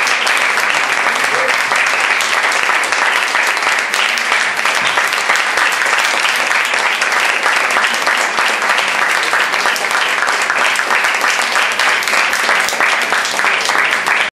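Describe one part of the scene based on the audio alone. An electric bass rumbles along with the band.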